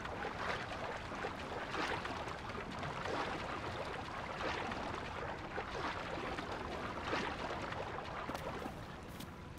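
Water splashes as a character swims.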